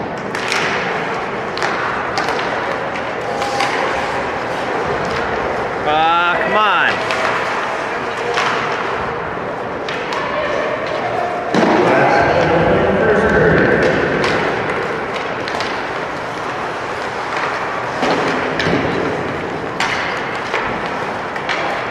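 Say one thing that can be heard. A crowd murmurs in a large echoing arena.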